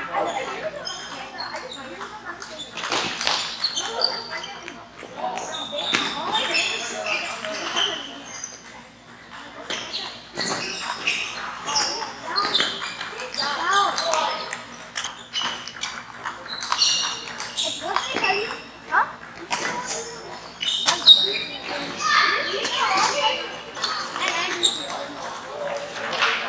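A crowd of people chatters in the background of a large echoing hall.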